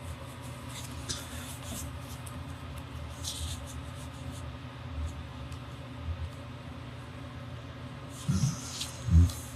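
A sheet of stiff paper rustles softly as it is handled.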